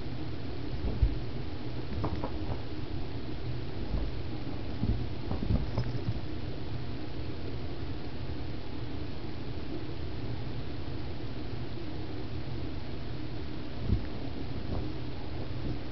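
A kitten's paws patter and thump softly on carpet close by.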